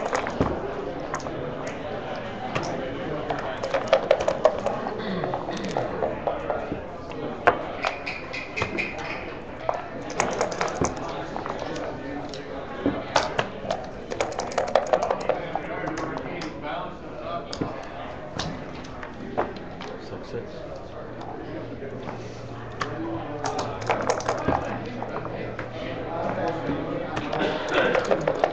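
Backgammon checkers click and clack as they are moved on the board.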